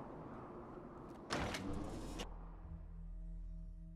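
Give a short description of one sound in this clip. A heavy metal door opens with a clunk.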